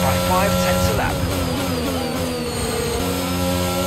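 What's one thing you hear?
A racing car engine winds down in pitch as the car slows for a corner.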